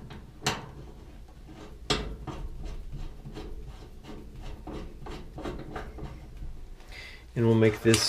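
A metal fitting clicks and ticks as it is screwed on by hand.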